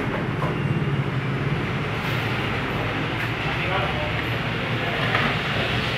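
Motorbikes and street traffic rumble steadily nearby.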